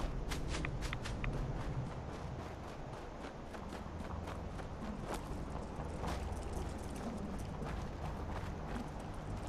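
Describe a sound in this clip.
Heavy armored footsteps thud steadily on the ground.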